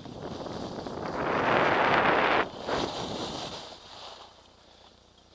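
Skis scrape and hiss loudly over snow, then fade.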